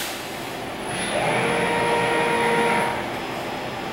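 A robot arm's motors whine as it moves.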